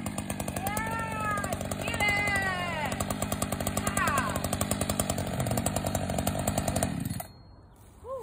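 A chainsaw engine idles with a steady rapid chugging, then cuts out.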